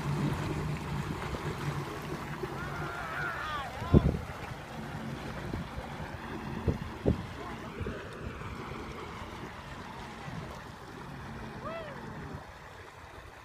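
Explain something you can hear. A personal watercraft engine hums steadily on the water.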